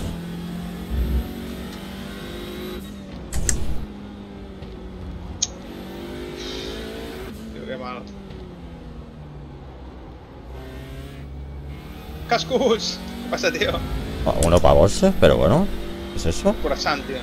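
A racing car engine drones and changes pitch as the car speeds up and shifts gears.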